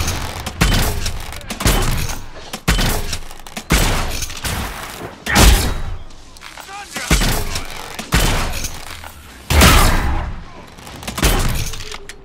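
A crossbow fires bolts in quick succession.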